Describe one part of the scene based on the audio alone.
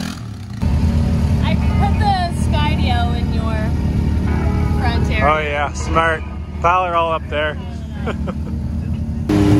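A young woman talks cheerfully and laughs close by.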